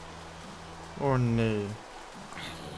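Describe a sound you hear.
A zombie groans loudly.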